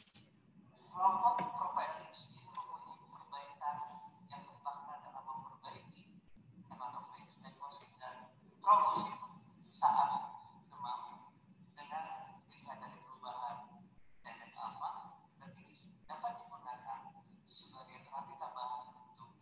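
A second man speaks steadily into a microphone.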